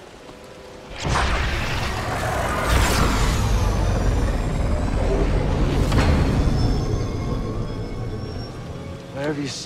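A spaceship roars past overhead with a rumbling engine.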